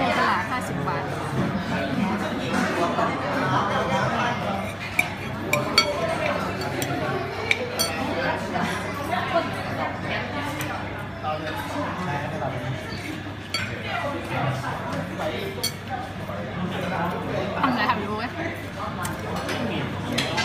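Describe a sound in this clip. People chatter in the background.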